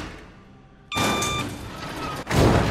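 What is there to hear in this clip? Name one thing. A device beeps.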